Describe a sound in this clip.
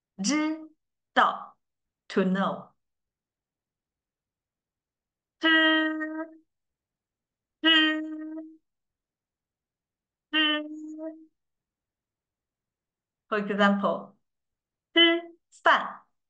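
A young woman speaks clearly into a close microphone, saying short words with pauses between them.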